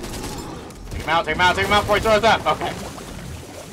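A man talks excitedly into a close microphone.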